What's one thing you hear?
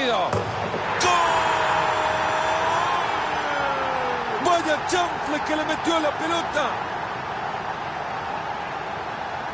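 A stadium crowd roars loudly after a goal.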